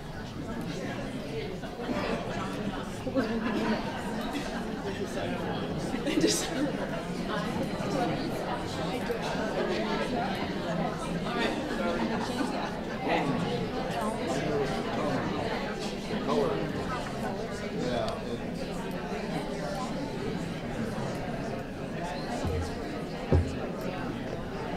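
A woman speaks steadily, as if giving a lecture, heard through a microphone in a room.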